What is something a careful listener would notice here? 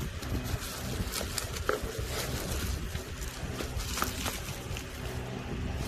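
Bubble wrap crinkles under a hand.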